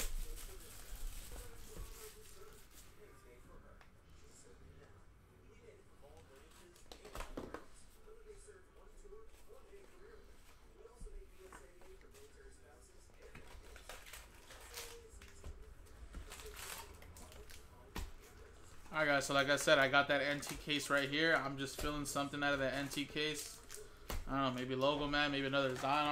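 Card packs and wrappers rustle and crinkle in hands.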